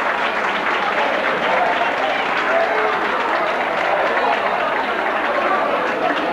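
A crowd of people chatter loudly in a hall.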